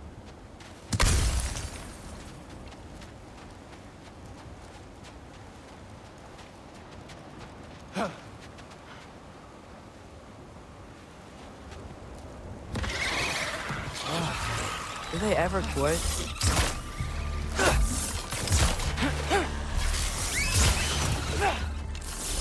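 Heavy blows thud and clash in a fight.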